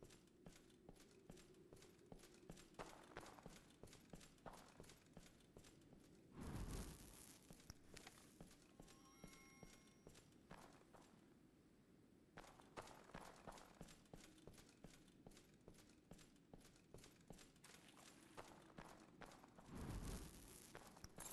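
Heavy armoured footsteps clank steadily on stone.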